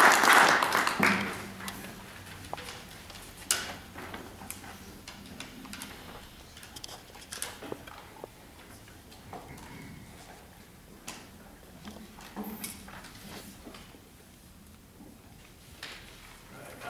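Acoustic guitar strings are plucked softly while being tuned, in an echoing hall.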